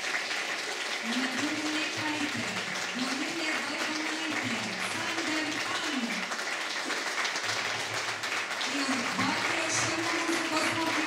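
A young woman sings slowly into a microphone in a large hall.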